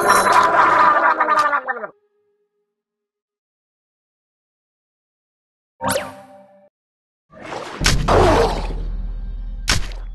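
Electronic game music plays in bursts.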